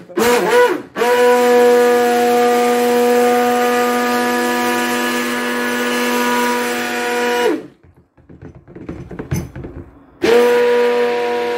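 A hand blender whirs steadily in liquid.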